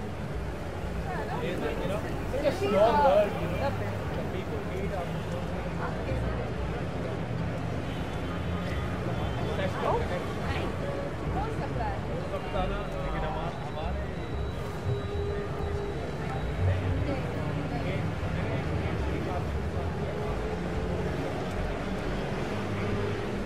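Traffic hums steadily along a busy street.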